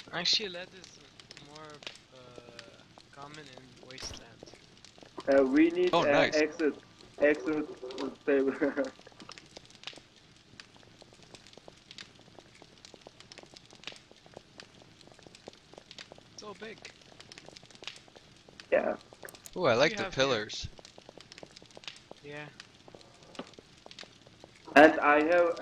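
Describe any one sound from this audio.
Footsteps tread quickly on rocky ground.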